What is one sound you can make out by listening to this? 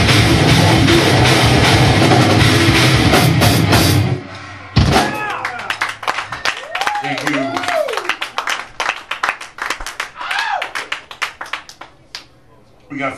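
A rock band plays loud, distorted music through loudspeakers.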